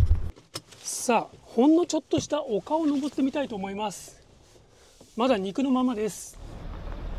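A young man talks calmly nearby.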